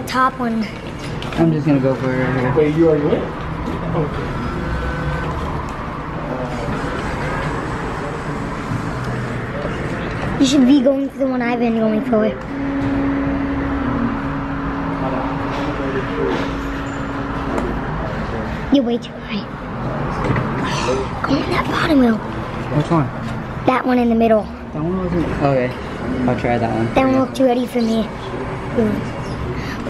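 An arcade claw machine plays a loud, cheerful tune.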